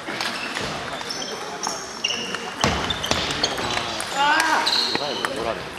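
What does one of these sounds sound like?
Shoes squeak on a hard floor in a large echoing hall.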